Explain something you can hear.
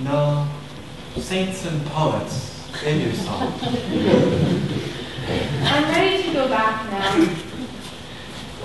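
A man speaks clearly on a stage, heard from the audience in an echoing hall.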